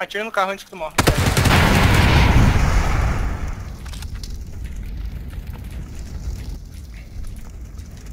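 A loud explosion booms and rumbles away slowly.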